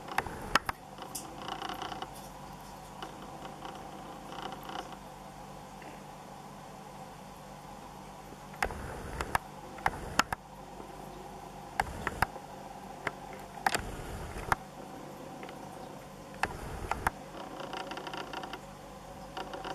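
Water trickles and bubbles steadily from an aquarium filter.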